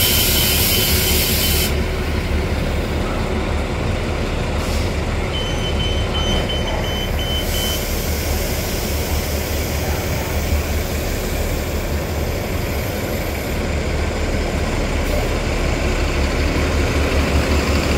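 A bus engine rumbles and idles nearby.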